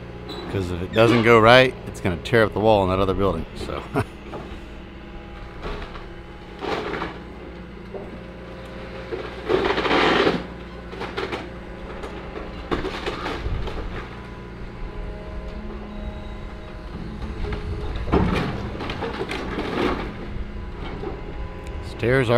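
A diesel excavator engine runs as the excavator works.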